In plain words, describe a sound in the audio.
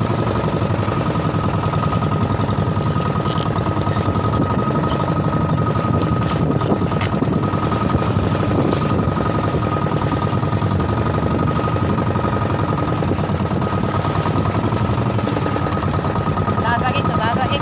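A boat engine chugs loudly and steadily.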